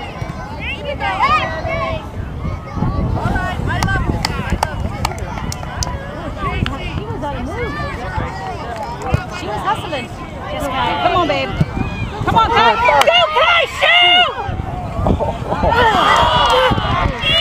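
Young girls shout and call out to each other outdoors.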